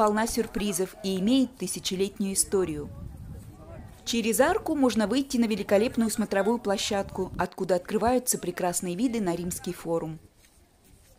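A woman speaks clearly to a group outdoors.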